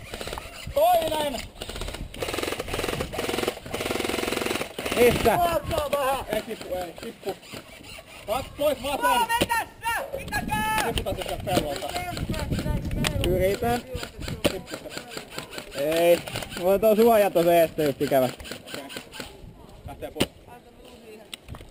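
A paintball gun fires with sharp pops.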